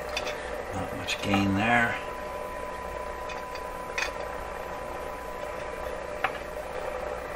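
A test probe clicks against metal contacts.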